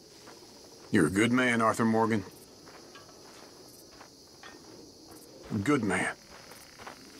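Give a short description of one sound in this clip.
An elderly man speaks warmly, close by.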